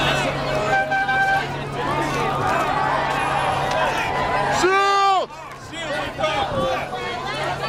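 A large crowd of marchers chants and shouts outdoors.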